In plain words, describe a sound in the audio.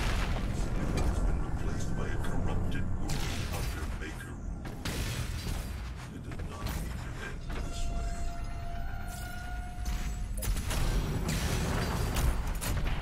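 Rushing whooshes and thuds sound as a game figure dashes and leaps along.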